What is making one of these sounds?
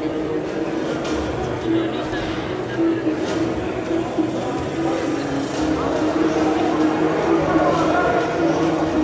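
A small crowd murmurs in a large echoing hall.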